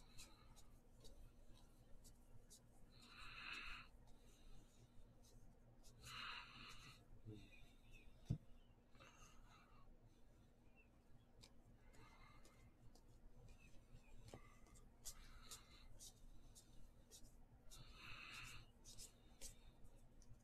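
Trading cards slide and rustle against each other as they are flipped through by hand.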